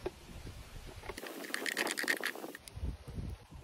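A palette knife scrapes across a painted surface.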